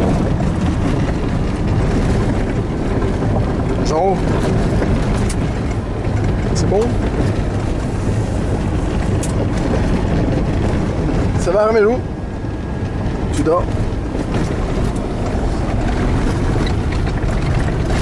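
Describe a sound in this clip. An off-road vehicle rumbles along a gravel road, heard from inside.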